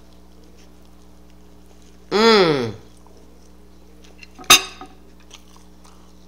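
An elderly woman bites into a sandwich and chews close to the microphone.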